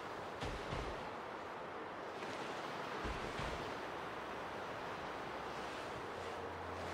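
Wind blows steadily across open snow.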